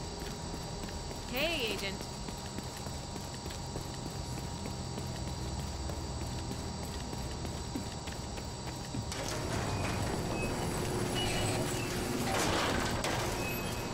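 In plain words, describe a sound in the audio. Footsteps run steadily over hard ground.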